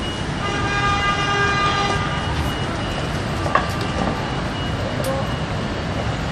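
A wheelchair rolls over paving stones.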